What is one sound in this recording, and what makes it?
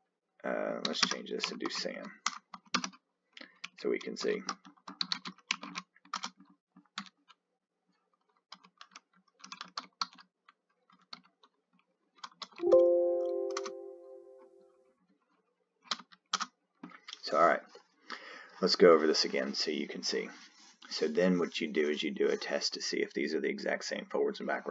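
A man speaks calmly and steadily into a close microphone.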